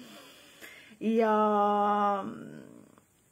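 A woman hums a steady note close by.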